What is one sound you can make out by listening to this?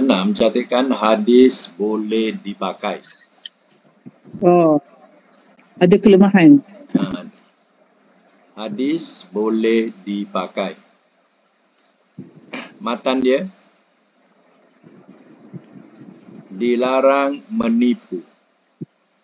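A woman speaks in short phrases through an online call.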